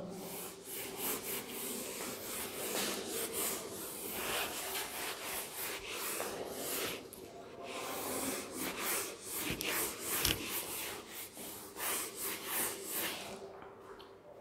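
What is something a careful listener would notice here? A felt eraser rubs briskly across a whiteboard.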